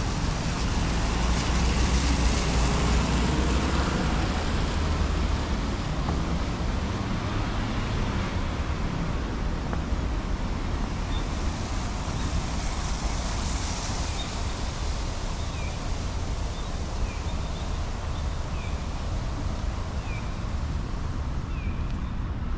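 Traffic rumbles steadily along a nearby road.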